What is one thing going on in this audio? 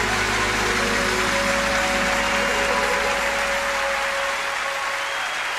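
A band plays the final chord of a song.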